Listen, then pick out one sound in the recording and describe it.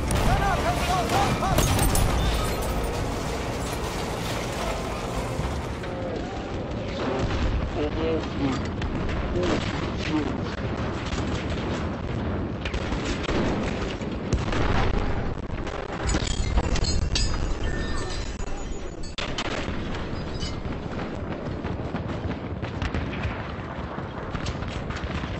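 Gunfire and explosions crack and boom in a video game.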